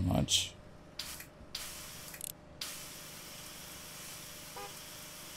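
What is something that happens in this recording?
A pressure washer hisses as it sprays water in bursts.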